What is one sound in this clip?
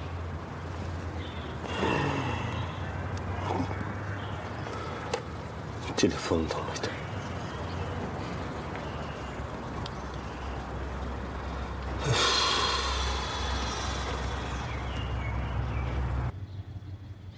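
A middle-aged man talks on a phone.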